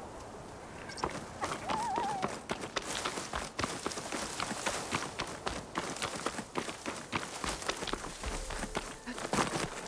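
Footsteps run quickly through grass and over gravel.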